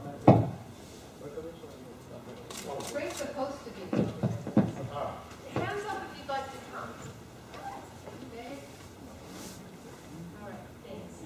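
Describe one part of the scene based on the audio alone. A man speaks into a microphone, his voice carried over loudspeakers.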